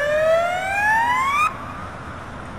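A megaphone siren wails with a quick rising sweep.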